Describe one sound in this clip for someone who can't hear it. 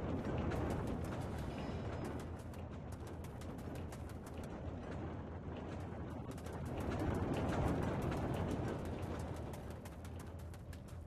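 Blades swish and clang in quick, repeated strikes.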